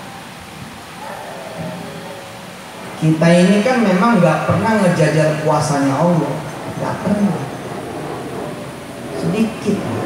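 A man speaks with feeling into a microphone, heard through a loudspeaker.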